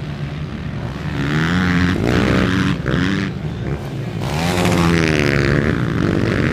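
A dirt bike engine roars loudly as the bike races past and jumps.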